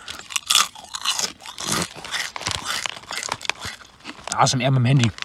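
A young man crunches chips loudly close to the microphone.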